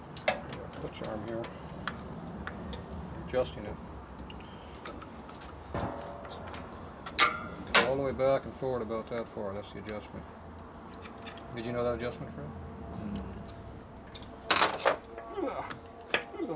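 Metal tools click and clink against metal parts.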